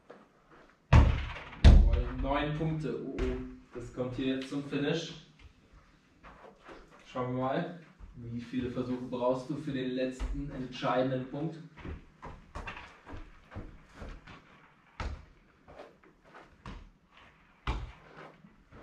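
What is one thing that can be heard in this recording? A ball thuds against a wall and bounces on the floor.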